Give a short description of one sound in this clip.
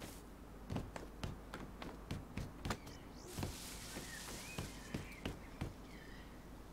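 Footsteps thud steadily on wooden boards and dry straw.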